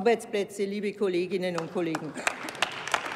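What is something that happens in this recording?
A middle-aged woman speaks over a microphone in a large hall.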